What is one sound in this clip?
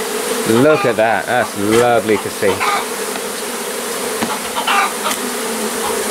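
Bees buzz steadily in a loud swarm close by.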